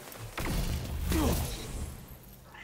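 An energy blast crackles and bursts.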